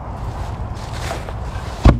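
Dry leaves crunch underfoot.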